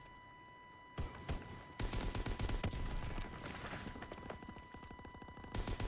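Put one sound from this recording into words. A heavy machine gun fires rapid bursts at close range.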